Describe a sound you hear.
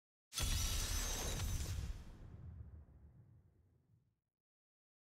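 A deep booming sound rumbles and slowly fades.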